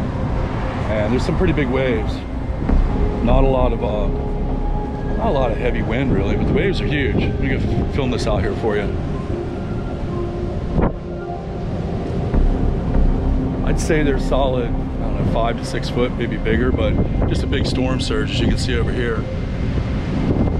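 A middle-aged man talks calmly close to the microphone.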